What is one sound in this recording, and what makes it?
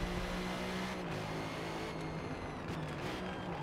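A racing car engine's pitch drops briefly as the car shifts gears.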